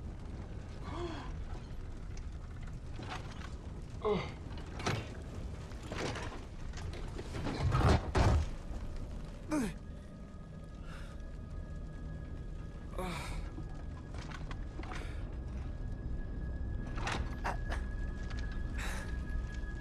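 A young man groans and gasps in pain close by.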